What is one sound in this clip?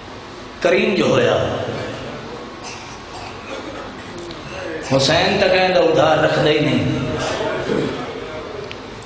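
A man sings a mournful chant loudly into a microphone, heard through loudspeakers in a reverberant space.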